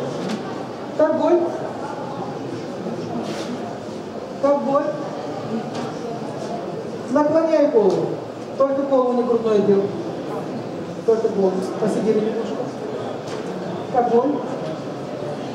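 A woman speaks calmly into a headset microphone, heard over a loudspeaker in an echoing room.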